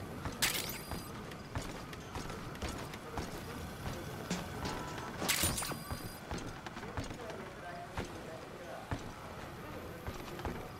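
Soft footsteps creep across a wooden floor.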